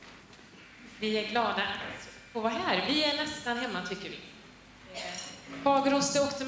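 A woman sings through a microphone in a large hall.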